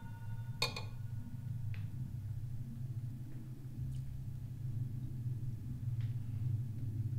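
Metal utensils clink against a metal plate.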